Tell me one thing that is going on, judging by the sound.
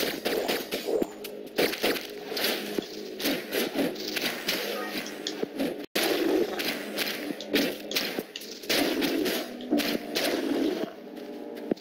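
Sword slashes swish and strike in quick bursts.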